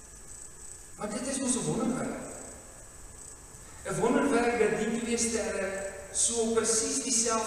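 A man sings slowly into a microphone, heard through loudspeakers in an echoing room.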